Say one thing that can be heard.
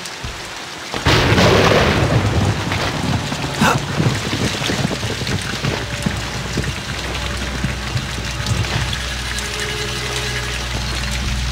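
Heavy rain pours down outdoors in gusting wind.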